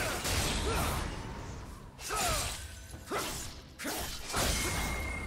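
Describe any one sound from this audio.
Sword slashes and magic effects burst in a video game fight.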